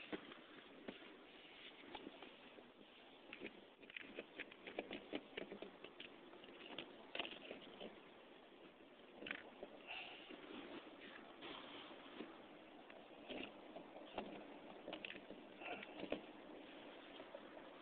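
A fabric bag rustles as it is handled.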